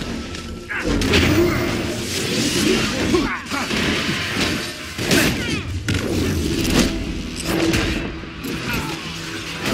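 Magic blasts burst with loud whooshing roars.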